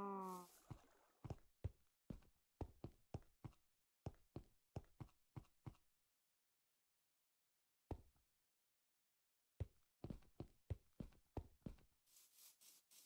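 Footsteps tap steadily on a hard path.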